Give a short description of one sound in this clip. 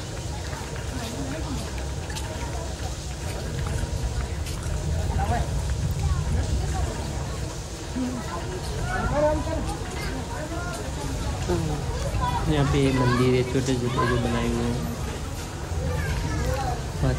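A man and a woman talk casually nearby.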